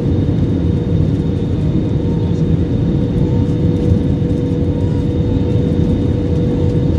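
A jet engine roars steadily inside an airplane cabin in flight.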